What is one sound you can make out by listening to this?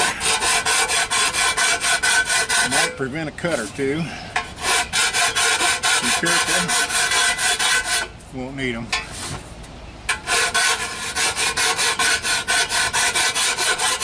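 Metal strikes a metal pipe in fast, steady taps, with a bright ringing sound.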